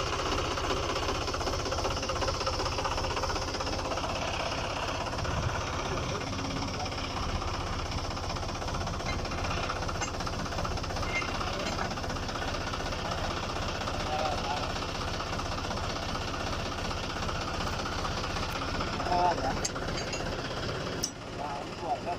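A tractor engine idles with a steady rumble.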